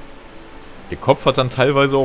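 A man speaks close to a microphone.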